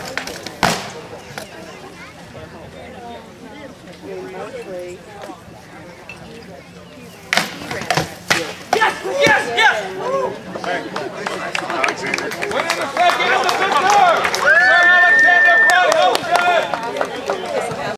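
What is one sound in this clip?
A crowd of men and women talks and cheers outdoors.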